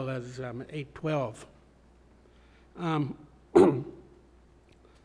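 An elderly man speaks calmly into a close microphone, in short phrases.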